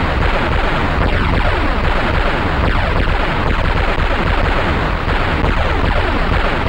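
Explosions boom again and again in a game.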